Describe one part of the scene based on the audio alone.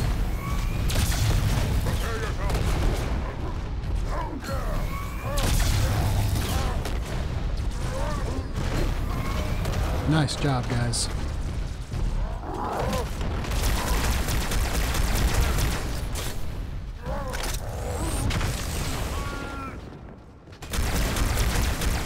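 Plasma blasts explode nearby.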